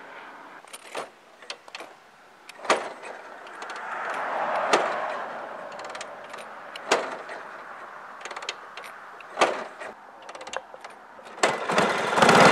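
A motorcycle kickstarter clunks several times.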